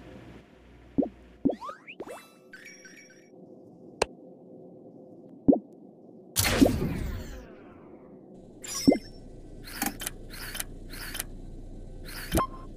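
Short electronic clicks and chimes sound in bursts.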